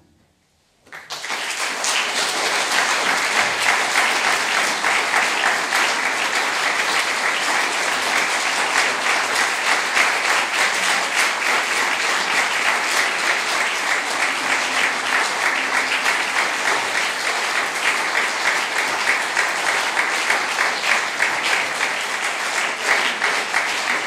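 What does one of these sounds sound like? An audience applauds loudly and steadily in a large room.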